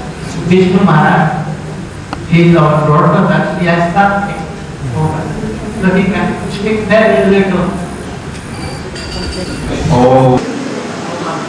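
An elderly man chants or speaks into a microphone, heard through a loudspeaker.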